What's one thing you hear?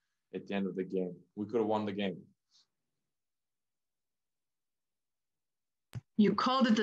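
A young man speaks calmly into a microphone, pausing between phrases.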